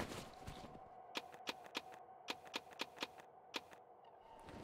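Short game menu clicks tick in quick succession.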